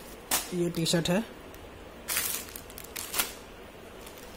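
A plastic wrapper crinkles and rustles as it is handled.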